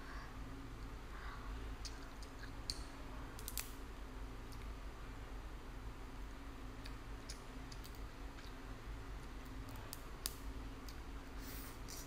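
A young woman chews food with soft, wet mouth sounds close by.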